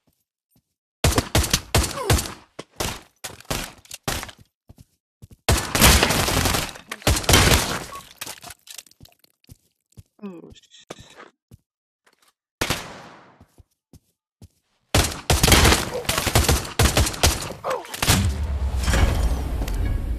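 Gunshots fire in rapid bursts and echo.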